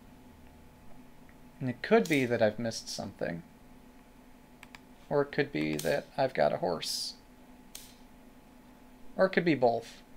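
A game piece clicks down onto a board.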